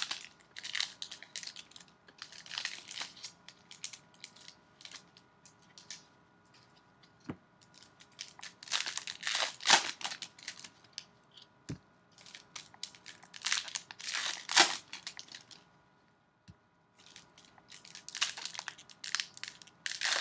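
Plastic wrappers crinkle and rustle as they are handled.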